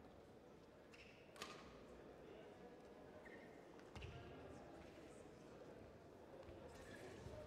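Shoes squeak on a court floor in a large echoing hall.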